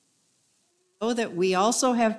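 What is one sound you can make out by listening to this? An elderly woman speaks calmly through a microphone in an echoing hall.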